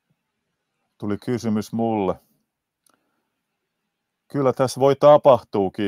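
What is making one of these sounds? A man speaks calmly into a close microphone, in two short bursts.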